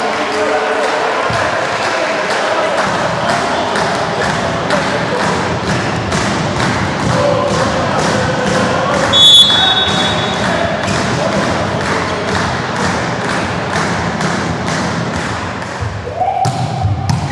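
A crowd claps in a steady, fast rhythm in a large echoing hall.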